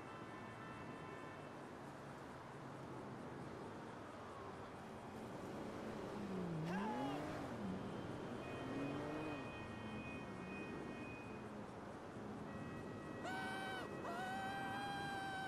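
Traffic hums steadily on a distant highway.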